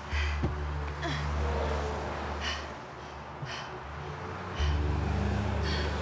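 A young woman gasps and groans in pain nearby.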